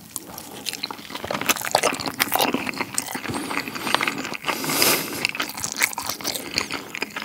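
A man chews food loudly and wetly close to a microphone.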